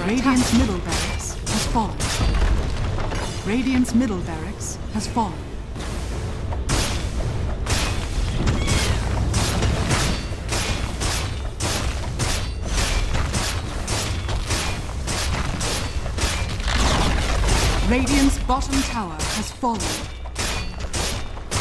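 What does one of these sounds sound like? Video game combat sounds of spells crackling and weapons striking ring out in quick bursts.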